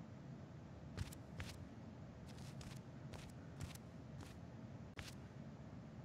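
Footsteps tread on a hard floor indoors.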